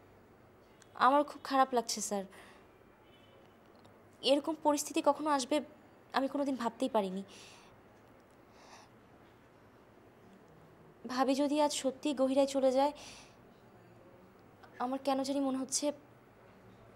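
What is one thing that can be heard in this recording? A young woman speaks close by in a pleading, upset voice.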